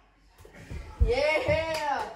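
A young boy shouts excitedly nearby.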